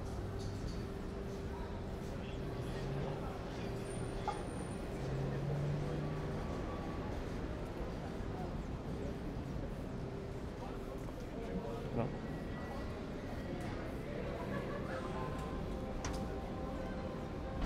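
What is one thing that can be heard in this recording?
Footsteps tap on a paved sidewalk.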